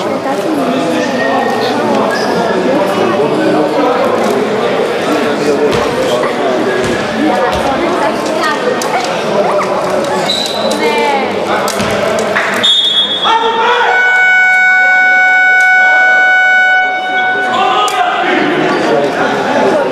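Many people chatter and call out in a large echoing hall.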